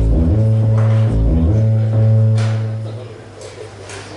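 Loud electronic synth tones drone through a loudspeaker, then cut off.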